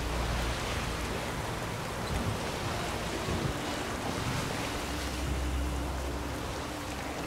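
Stormy waves crash and splash against a boat's hull.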